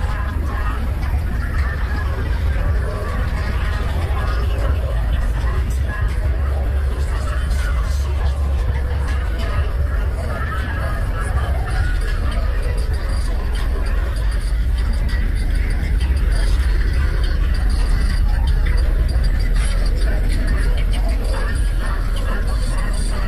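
Deep bass music booms loudly from car speakers.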